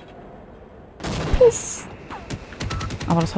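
A grenade explodes with a loud blast.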